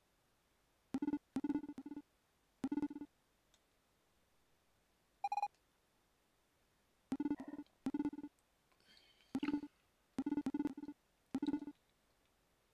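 Short electronic blips chirp in quick bursts.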